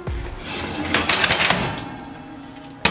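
A metal pan scrapes along an oven rack.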